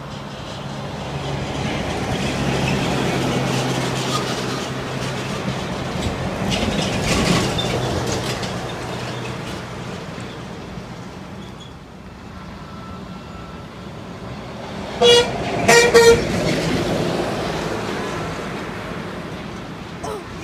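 Heavy trucks rumble loudly past on a nearby road.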